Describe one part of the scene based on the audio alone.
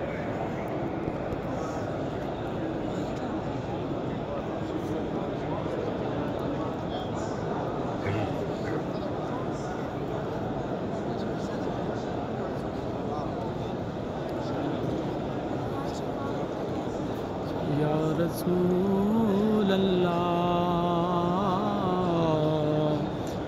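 A large crowd murmurs softly in a big echoing hall.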